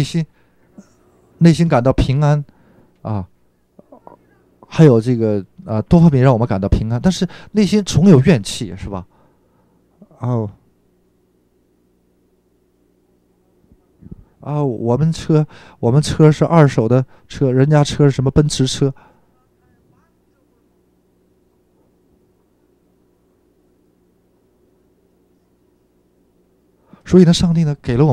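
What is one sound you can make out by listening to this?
An older man speaks with animation through a microphone, pausing between phrases.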